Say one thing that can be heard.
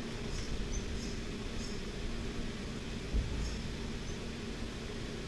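A makeup brush sweeps softly against skin.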